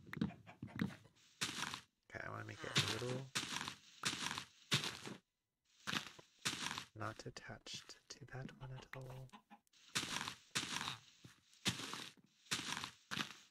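Leaves crunch and rustle in short bursts as they are broken.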